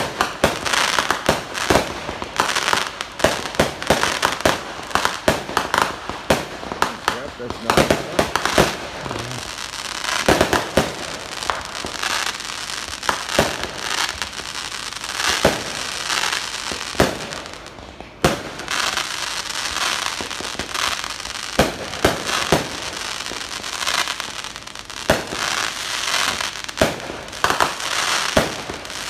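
Fireworks bang and pop outdoors, many times in quick succession.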